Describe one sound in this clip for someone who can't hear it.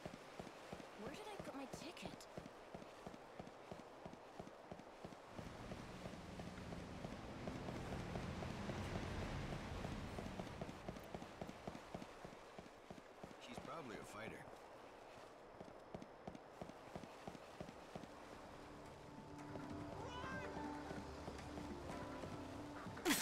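Footsteps run quickly and steadily on hard ground.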